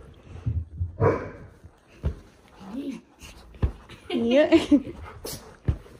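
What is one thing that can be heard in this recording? A small dog barks sharply close by.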